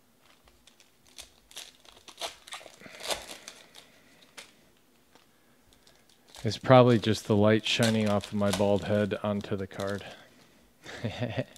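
A foil pack crinkles and tears open.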